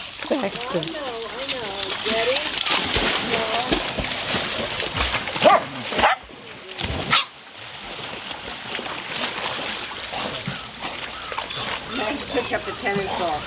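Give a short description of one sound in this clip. Dogs whine and yelp excitedly nearby.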